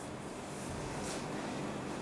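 A man wipes a chalkboard with a cloth.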